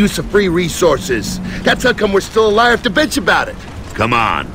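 A man speaks sarcastically in a gruff voice, close by.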